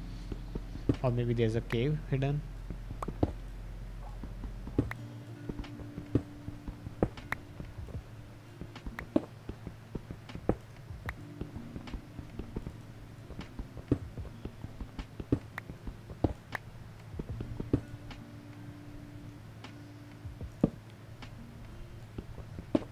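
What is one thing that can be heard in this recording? A pickaxe chips at stone in quick, repeated knocks.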